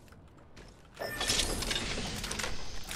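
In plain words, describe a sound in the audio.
A metal supply bin clanks open.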